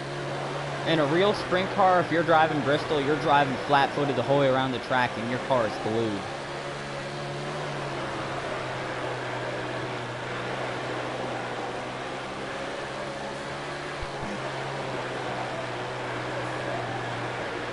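A racing car engine drones steadily at high revs.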